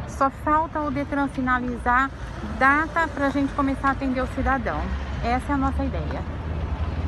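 An older woman speaks calmly and close by.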